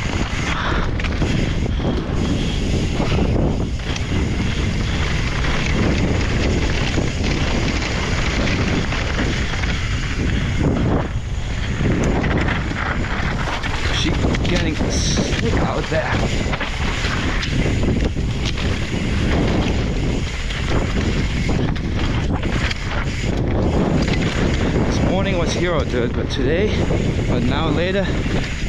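Wind rushes past the microphone of a mountain bike.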